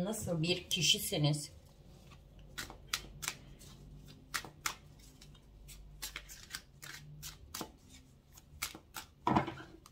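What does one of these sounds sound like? Cards riffle and flick quickly in a shuffle.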